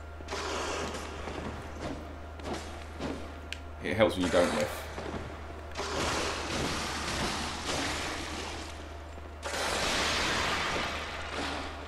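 A blade slashes and strikes flesh with wet thuds.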